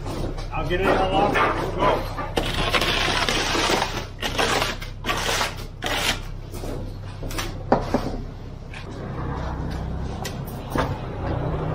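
Wet concrete slides and scrapes down a metal chute.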